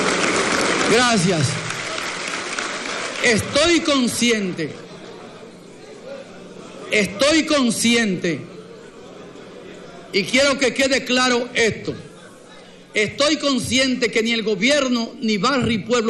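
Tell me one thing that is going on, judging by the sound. An older man speaks calmly and firmly into a microphone, echoing through a large hall.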